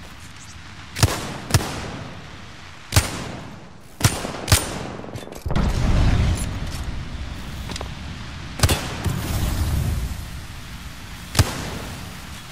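Single gunshots ring out one by one, sharp and echoing.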